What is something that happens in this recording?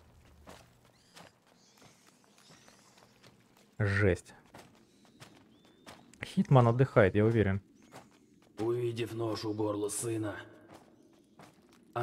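A child's footsteps patter quickly on stone.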